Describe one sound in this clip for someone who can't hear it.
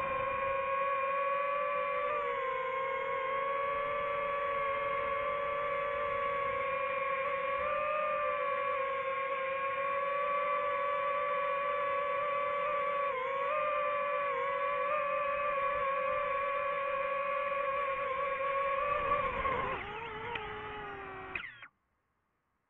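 A drone's propellers whine steadily close by, then wind down and stop.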